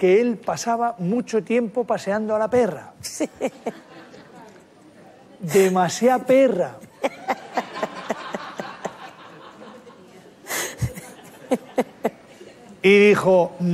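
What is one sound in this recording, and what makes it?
A woman laughs heartily close to a microphone.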